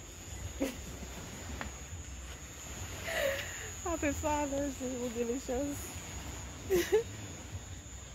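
A man laughs softly nearby.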